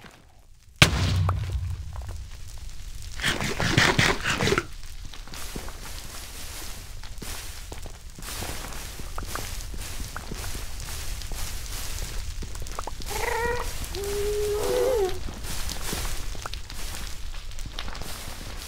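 Blocks crunch as they are broken, in short repeated bursts.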